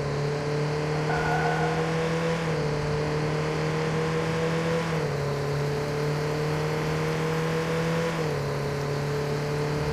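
A car engine hums steadily, rising in pitch and dropping with each gear change.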